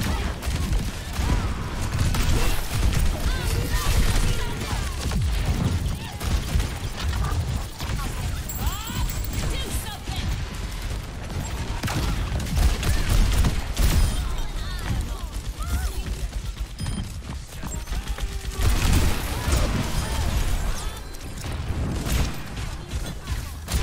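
Rapid gunshots crack and boom in a video game fight.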